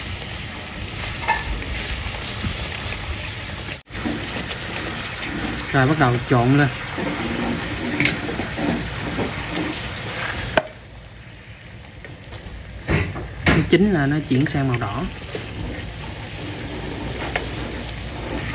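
Metal utensils clink against a pan.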